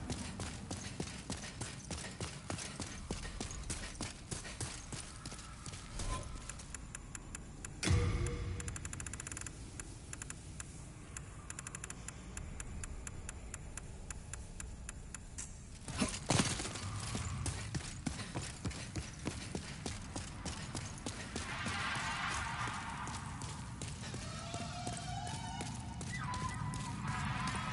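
Armored footsteps thud quickly on stone.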